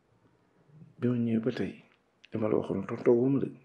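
A middle-aged man speaks calmly up close.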